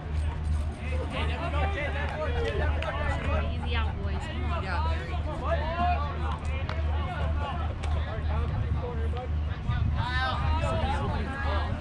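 Young ballplayers call out to each other across an open field.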